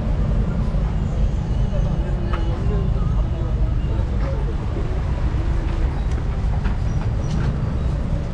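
People chatter in a busy street.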